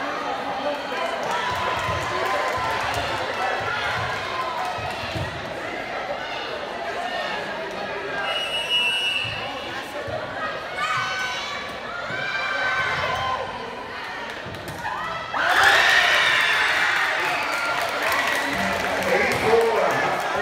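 A crowd of young people chatters and calls out in a large echoing hall.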